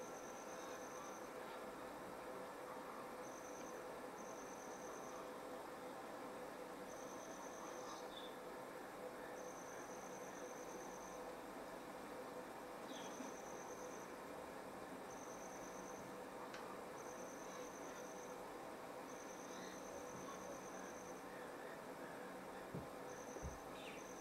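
Rain patters steadily on leaves and water.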